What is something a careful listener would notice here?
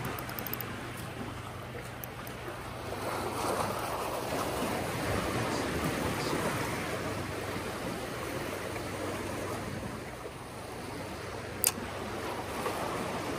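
Sea water washes and splashes against rocks nearby, outdoors.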